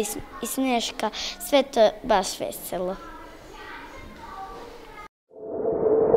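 A young girl speaks close to a microphone.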